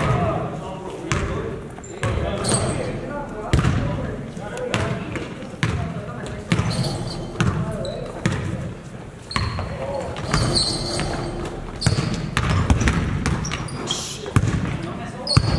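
A basketball bounces repeatedly on a hardwood floor in a large echoing gym.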